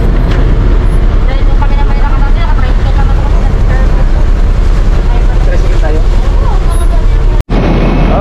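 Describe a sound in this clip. Passengers chatter nearby in a crowded bus.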